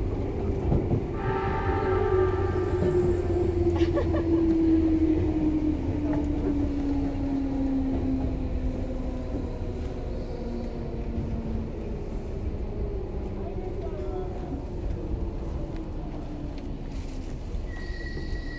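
An electric train motor whines, its pitch slowly falling.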